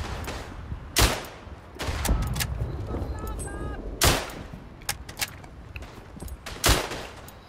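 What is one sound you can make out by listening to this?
A rifle fires loud, sharp shots that echo.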